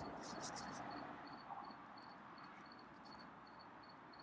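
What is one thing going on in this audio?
A cat crunches dry food.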